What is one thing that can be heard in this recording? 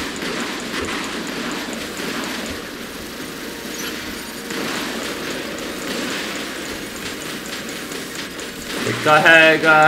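Rockets whoosh and burst as they launch.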